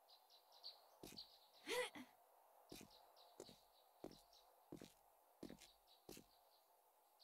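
Footsteps thud at an even pace.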